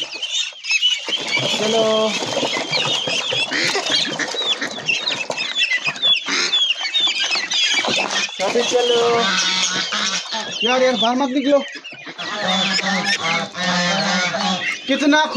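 Water splashes as ducks swim and flap.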